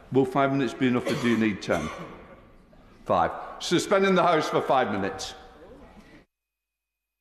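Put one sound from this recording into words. An elderly man speaks firmly and with animation into a microphone in a large echoing hall.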